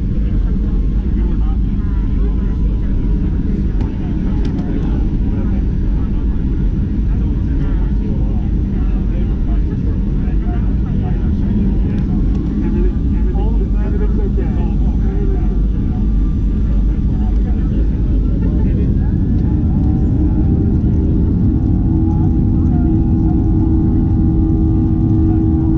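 Aircraft wheels rumble over the runway.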